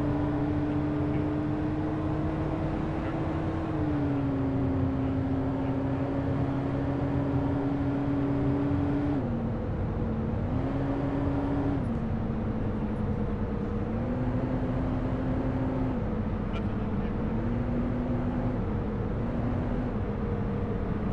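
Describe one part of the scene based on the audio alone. A truck engine drones steadily, its pitch shifting up and down as it changes gear.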